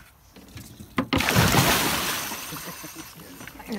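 A large fish thrashes and splashes hard at the water's surface.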